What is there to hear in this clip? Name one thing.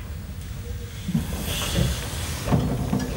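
A steam locomotive hisses steam close by.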